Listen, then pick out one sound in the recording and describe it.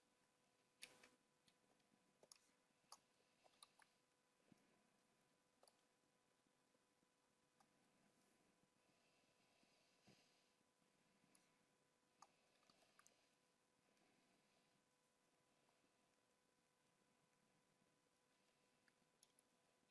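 A man talks quietly and calmly into a microphone.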